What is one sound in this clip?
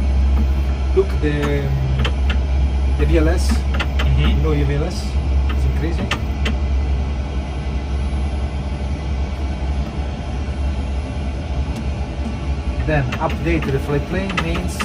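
A low, steady hum of aircraft equipment drones throughout.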